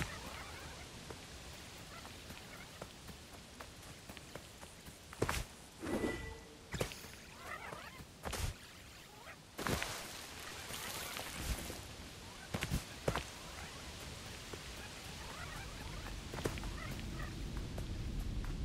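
Footsteps patter quickly over grass and rock.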